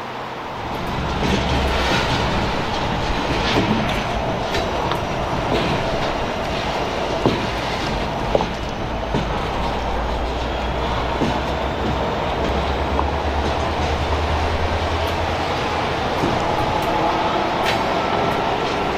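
Freight train wheels clack and squeal on the rails as cars roll past.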